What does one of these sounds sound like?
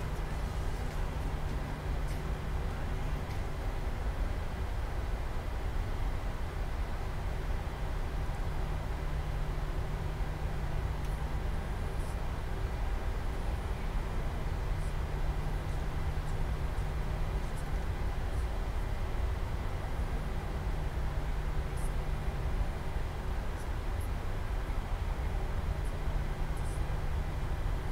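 A jet engine hums and rumbles steadily at low power.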